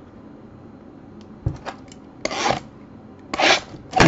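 Fingers rub and tap against a cardboard box.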